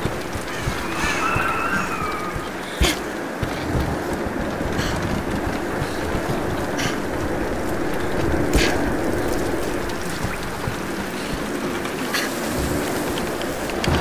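Heavy rain falls steadily.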